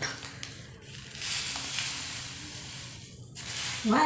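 Seasoning powder rustles out of a packet.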